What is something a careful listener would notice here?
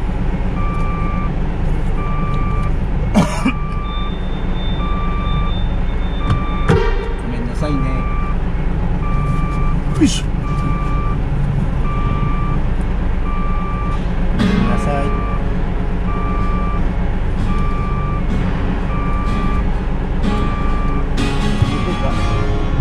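A large engine rumbles steadily at low speed.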